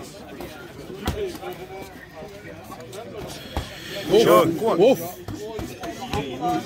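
A crowd of young men chatter and shout outdoors.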